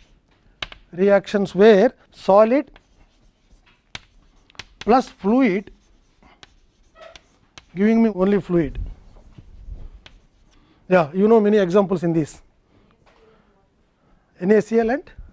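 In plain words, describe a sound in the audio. An older man speaks calmly in short phrases, as if lecturing.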